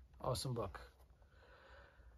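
A plastic case rustles in a man's hands.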